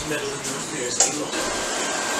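Dishes clink sharply nearby.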